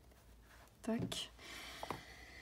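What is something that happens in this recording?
A hand punch clicks through card.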